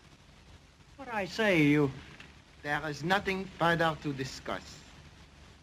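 An older man speaks with emotion, his voice rising.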